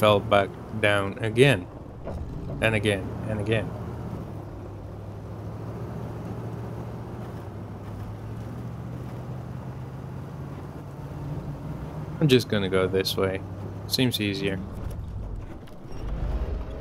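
A truck engine rumbles steadily as it climbs.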